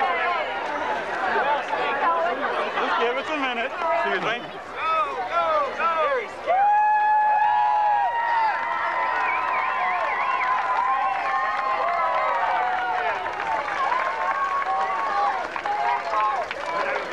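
A whistling steam organ plays a lively tune outdoors.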